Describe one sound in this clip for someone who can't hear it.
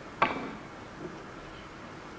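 Billiard balls knock against each other.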